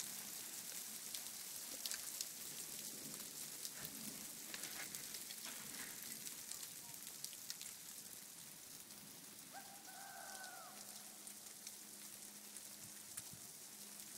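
A fire crackles and pops close by.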